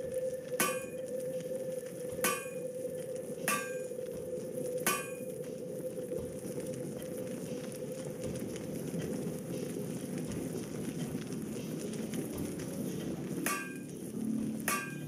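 A hammer strikes metal with short ringing clangs.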